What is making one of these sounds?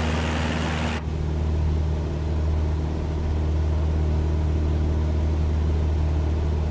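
A small plane's engine drones, muffled, from inside the cabin.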